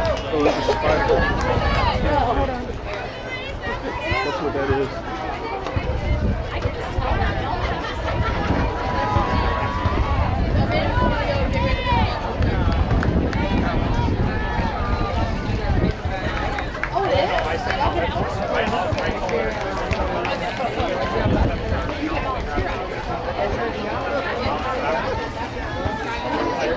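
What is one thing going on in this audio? A crowd of young players and adults chatter and call out across an outdoor field.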